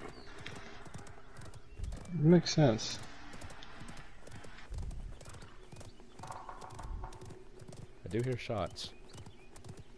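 A horse's hooves gallop in a steady beat.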